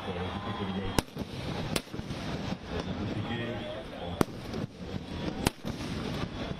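Firecrackers burst with sharp, loud bangs.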